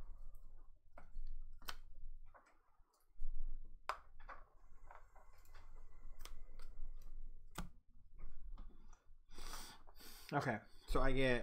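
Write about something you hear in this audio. Game pieces click softly on a board.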